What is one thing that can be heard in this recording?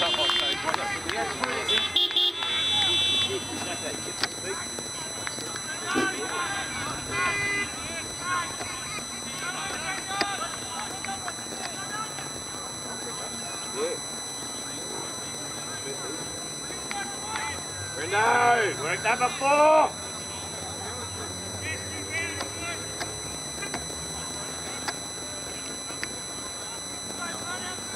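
Young women shout to each other from across an open field.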